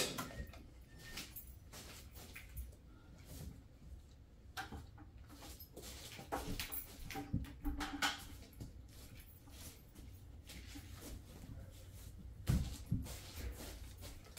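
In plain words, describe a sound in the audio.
Footsteps shuffle on the carpet.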